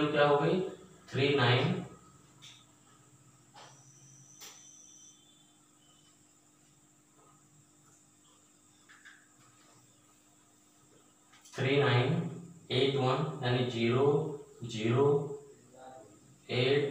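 A man speaks calmly and explains, close by.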